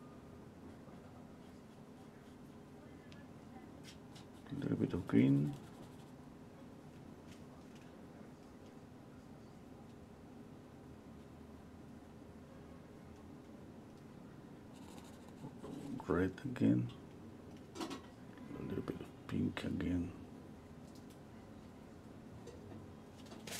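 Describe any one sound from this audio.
A paintbrush softly brushes across canvas.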